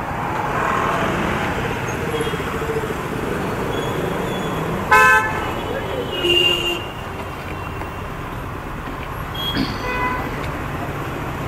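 Traffic hums and rumbles along a busy street.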